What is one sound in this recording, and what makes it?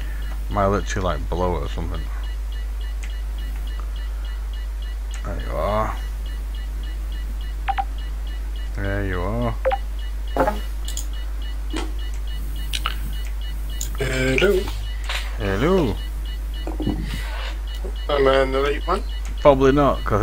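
A man speaks in short bursts into a close microphone, with pauses in between.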